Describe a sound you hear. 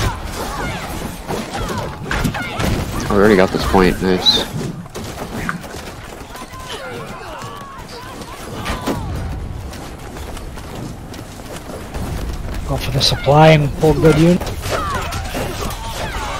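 Swords clash and clang in a fierce fight.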